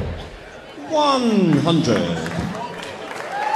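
A man calls out a score loudly and drawn out through a loudspeaker.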